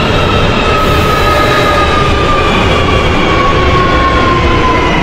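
A train's motor whines with a slowly falling pitch as the train slows.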